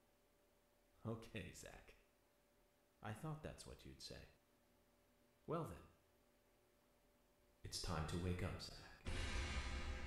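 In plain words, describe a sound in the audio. A man speaks calmly, close to a microphone, in short phrases with pauses.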